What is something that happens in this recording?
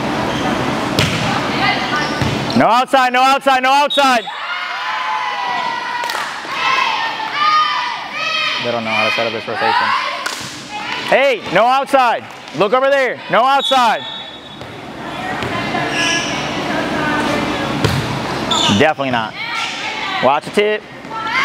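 A volleyball is struck with sharp slaps in an echoing gym.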